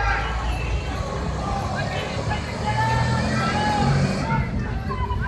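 An armoured truck's engine rumbles nearby.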